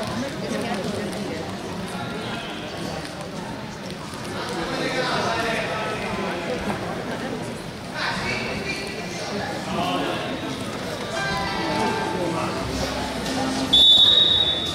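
Men talk with animation nearby in a large echoing hall.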